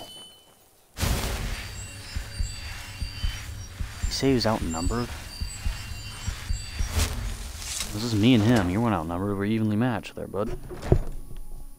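A magic spell hums and crackles steadily.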